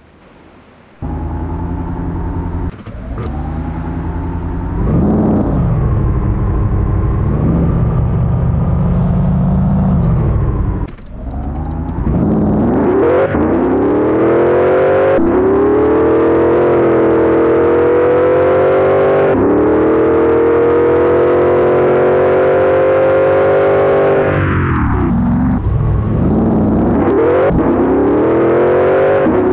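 A car engine revs and roars, rising and falling in pitch as it speeds up and slows down.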